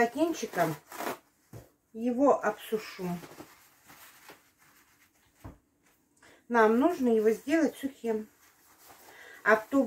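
Paper towels rustle and tear.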